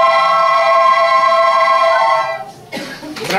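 A large crowd of children sings a long, held note.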